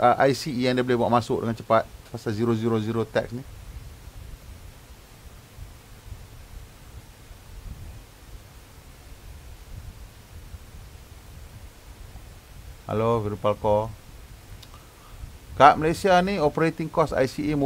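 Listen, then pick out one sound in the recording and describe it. A man talks calmly into a microphone, heard up close.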